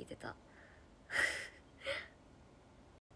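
A young woman laughs lightly.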